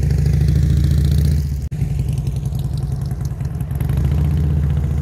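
A motorcycle engine rumbles steadily as the motorcycle rides by close by.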